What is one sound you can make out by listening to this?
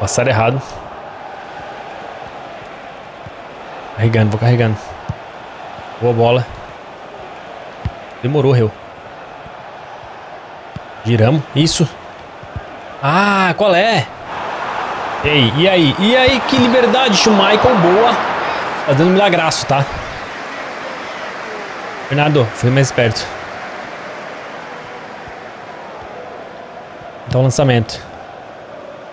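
A stadium crowd murmurs and swells into a roar.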